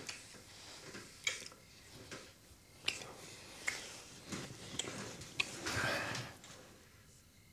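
A young man and a young woman kiss softly.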